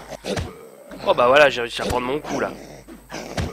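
A zombie growls and groans loudly.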